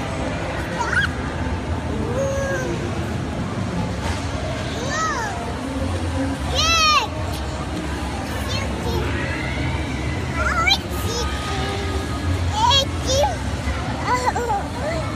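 A toddler girl squeals and babbles excitedly close by.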